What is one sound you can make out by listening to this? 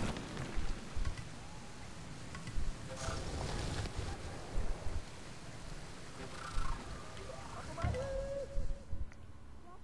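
Water rushes down a waterfall.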